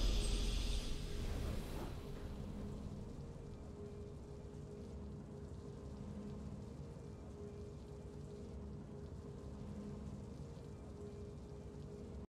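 Soft, triumphant game music plays in a slow repeating loop after a brief swell at the start.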